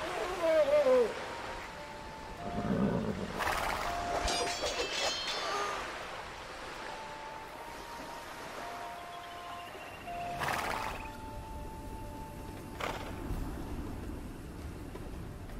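Swords clash and hack at a building.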